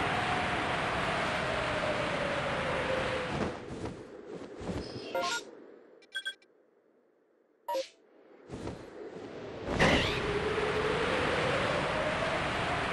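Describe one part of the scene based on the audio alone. Wind rushes steadily past during a high glide.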